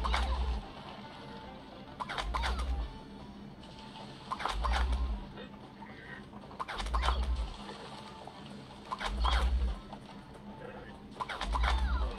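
Cartoon plant creatures shoot with repeated popping bursts.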